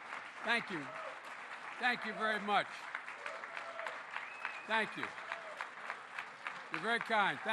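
An elderly man speaks through a microphone, in short bursts with animation.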